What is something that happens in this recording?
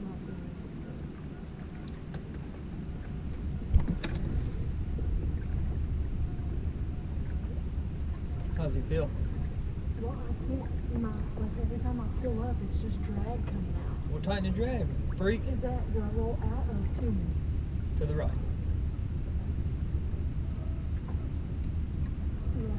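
A boat motor hums low and steady.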